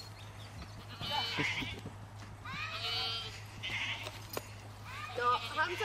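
Goats bleat nearby outdoors.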